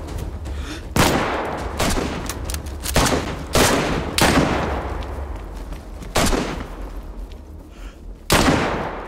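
Loud rifle shots ring out one at a time, each echoing away.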